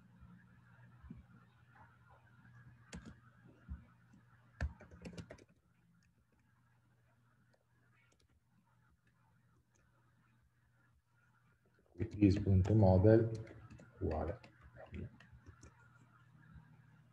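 Keys on a keyboard click in short bursts.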